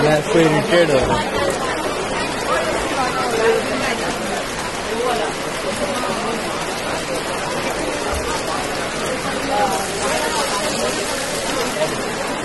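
Rain patters steadily on a wet street outdoors.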